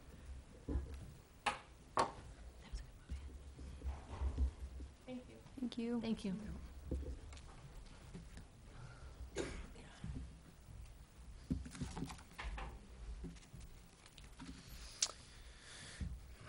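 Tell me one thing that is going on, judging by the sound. A woman speaks calmly through a microphone at a distance.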